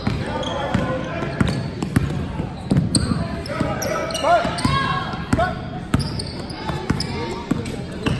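A basketball bounces on a wooden floor as a player dribbles.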